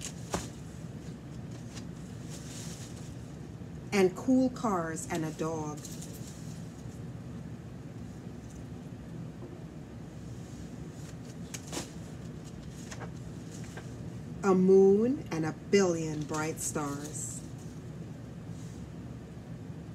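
Paper pages rustle as a book is turned.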